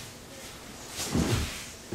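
A body drops onto a mat with a dull thud.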